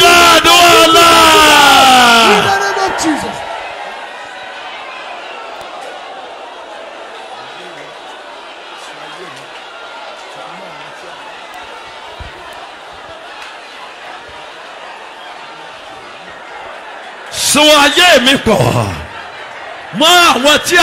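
A man preaches loudly and with fervour through a microphone and loudspeakers in an echoing hall.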